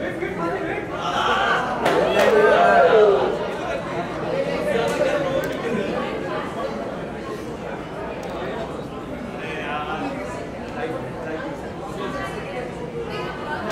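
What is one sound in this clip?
A young man greets another man with animation, close by.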